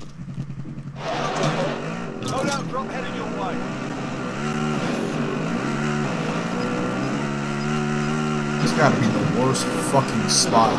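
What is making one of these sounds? A quad bike engine revs and drones as it drives over rough ground.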